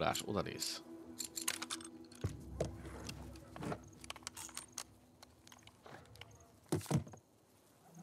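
Metal parts of a gun click and clack as they are handled.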